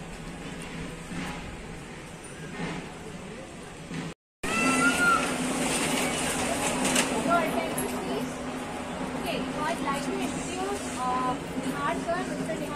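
A crowd of men and women chatters all around.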